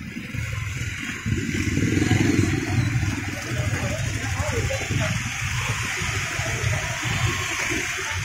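A busy crowd murmurs outdoors.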